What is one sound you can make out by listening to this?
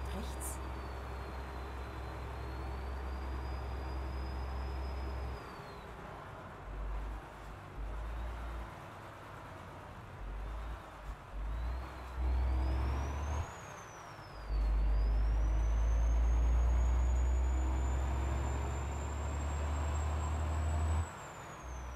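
Tyres roll along the road.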